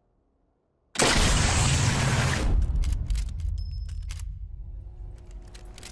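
A rifle fires a single shot with a loud boom that slowly fades.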